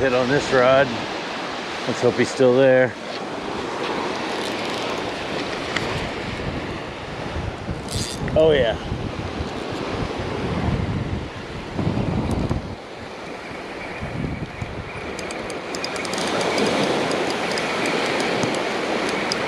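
Small waves wash and break on a sandy shore.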